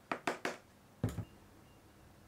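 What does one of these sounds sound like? A glass is set down on a wooden table with a dull knock.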